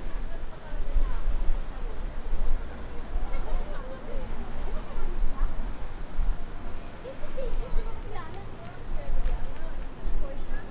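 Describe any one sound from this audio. Passers-by chatter faintly nearby.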